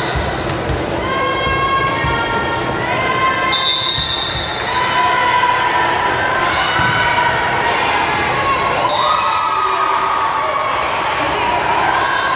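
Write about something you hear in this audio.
Young women shout and call out to each other on the court.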